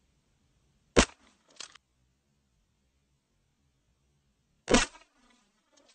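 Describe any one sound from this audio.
A gunshot cracks loudly outdoors.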